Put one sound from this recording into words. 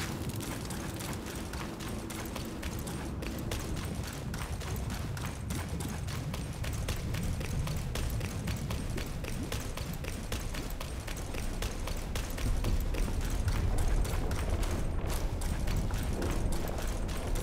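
Footsteps crunch quickly over gravel.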